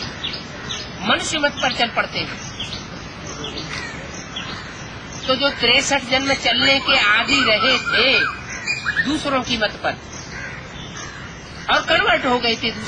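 An elderly man speaks calmly and close by.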